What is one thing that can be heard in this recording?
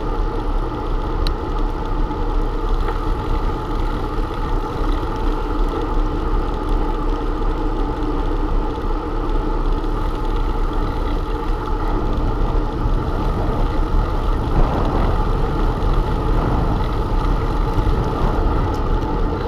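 Wind rushes loudly past a moving bicycle rider.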